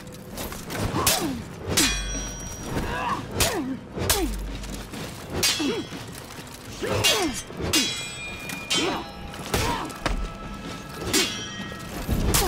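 Metal blades clash and ring out sharply, again and again.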